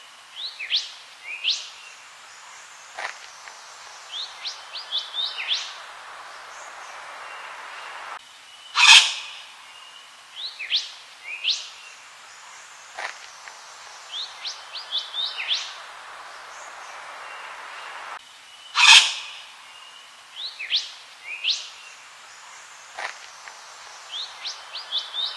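A bird sings sharp, rising chirps close by.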